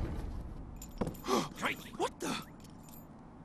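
A man cries out in alarm.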